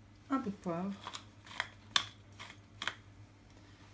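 A pepper mill grinds with quick crackling turns.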